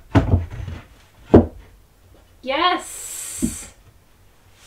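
A wooden board knocks against a wall.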